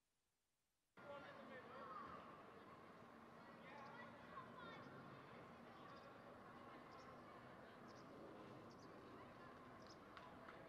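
Players call out faintly across a wide open field.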